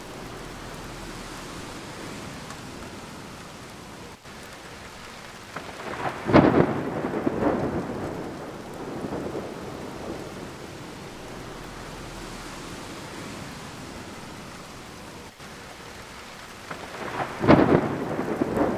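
Rain patters steadily against a window pane.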